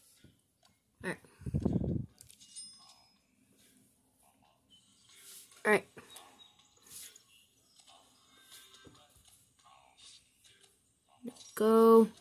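Short electronic chimes and jingles play from a small tablet speaker.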